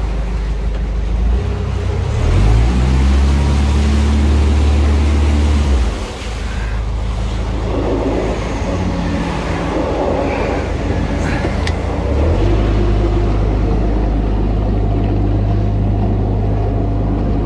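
A boat engine throbs steadily at a low pitch.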